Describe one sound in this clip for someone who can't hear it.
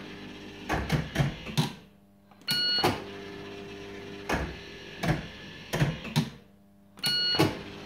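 Slot machine reels spin and stop with sharp clunks.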